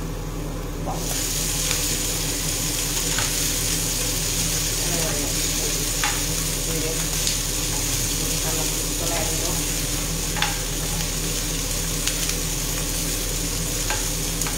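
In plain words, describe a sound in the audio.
Food sizzles loudly in a frying pan.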